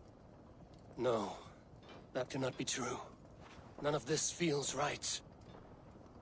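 A man speaks in a low, doubtful voice, close by.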